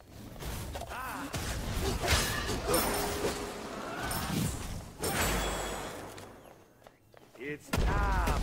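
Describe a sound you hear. Game sound effects clash and whoosh in a fight.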